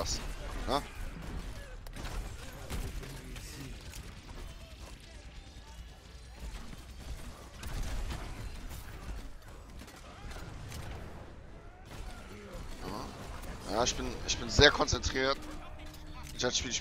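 Game gunfire thumps in quick bursts.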